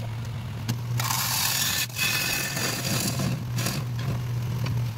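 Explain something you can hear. A gouge scrapes and hisses against spinning wood on a lathe.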